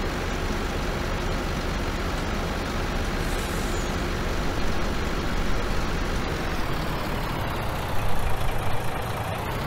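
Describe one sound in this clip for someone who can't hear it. A heavy engine drones steadily.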